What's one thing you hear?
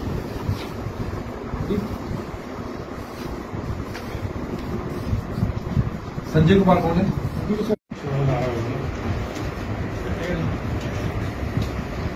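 Paper sheets rustle as pages turn.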